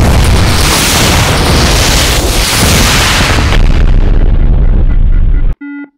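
Explosions rumble loudly and heavily.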